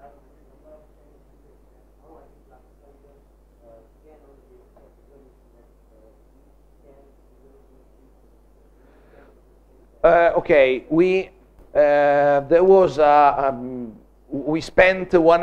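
A middle-aged man lectures in a calm, steady voice, at first faint and then loud and close.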